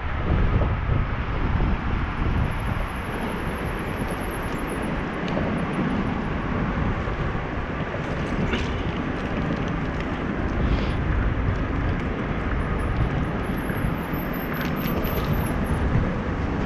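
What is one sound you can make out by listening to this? Wind rushes loudly past, as if heard while moving outdoors.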